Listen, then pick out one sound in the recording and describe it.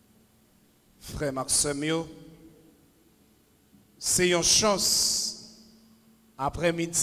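A man speaks loudly into a microphone, heard through loudspeakers in an echoing hall.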